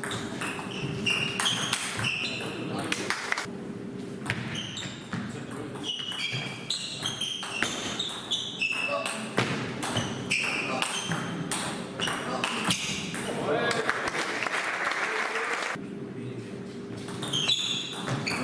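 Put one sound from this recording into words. A table tennis ball clicks rapidly back and forth off paddles and the table in an echoing hall.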